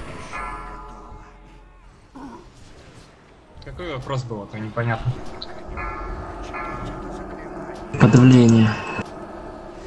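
Magic spells and combat sounds from a game crackle and whoosh.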